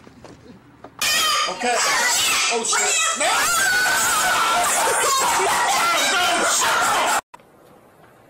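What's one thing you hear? A cockatoo screeches loudly and harshly.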